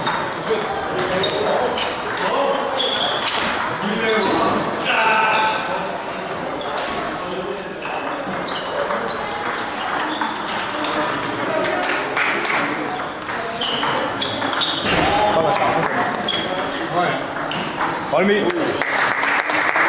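Table tennis balls click sharply off paddles and tables in a large echoing hall.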